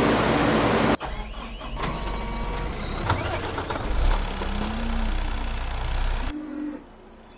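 A wheel loader engine rumbles and whines.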